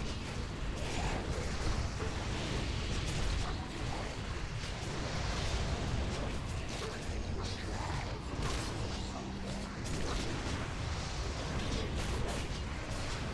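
Spell blasts and fiery bursts crackle again and again.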